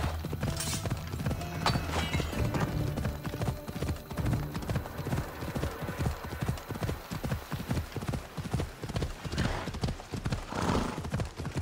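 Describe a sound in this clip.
A horse's hooves thud in a quick, steady gallop over grass and dirt.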